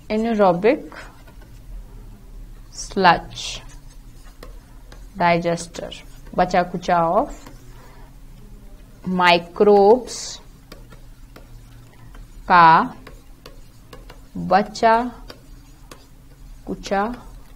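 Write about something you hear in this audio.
A young woman speaks calmly into a close microphone, in short phrases with pauses.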